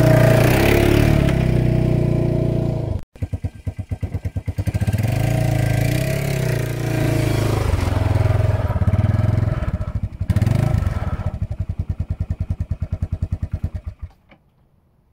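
A quad bike engine rumbles close by, then cuts out.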